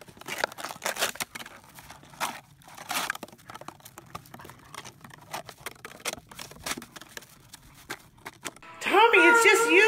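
A dog digs and paws at snow.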